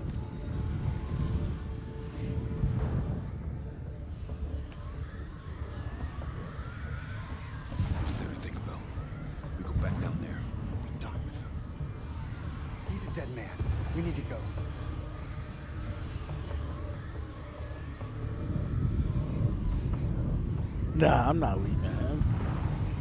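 A young man speaks tensely, close by.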